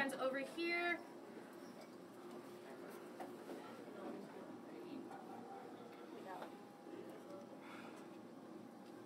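People murmur quietly in a small enclosed space.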